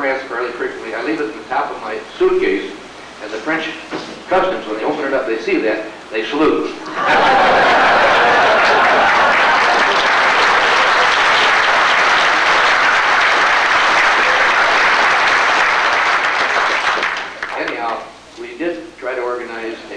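An older man speaks calmly into a microphone, with pauses.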